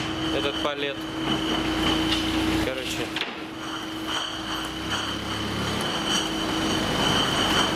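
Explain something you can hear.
A forklift engine runs nearby.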